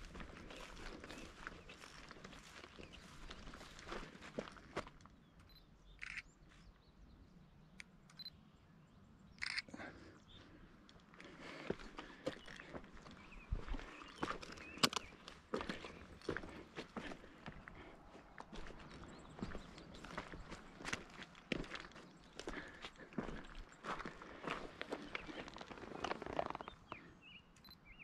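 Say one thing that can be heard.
Footsteps crunch through dry grass and over rock.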